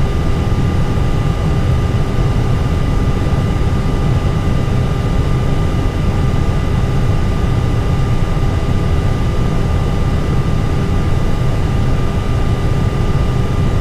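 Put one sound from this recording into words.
Jet engines hum steadily with a low rumble.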